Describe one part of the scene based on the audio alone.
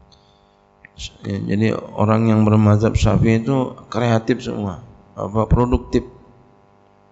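A middle-aged man speaks calmly and with feeling into a close microphone.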